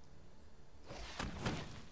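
A card game plays a shimmering spell effect with a whoosh.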